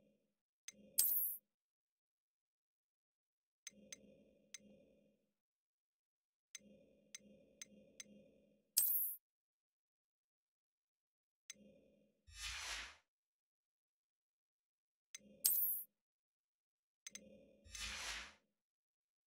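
Whooshing menu sounds sweep past.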